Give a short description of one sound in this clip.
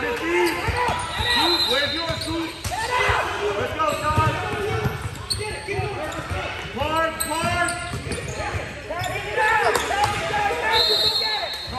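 A basketball bounces with dull thumps on the floor.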